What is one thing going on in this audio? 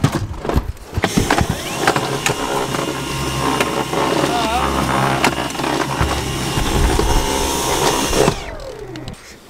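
A handheld vacuum cleaner whirs loudly.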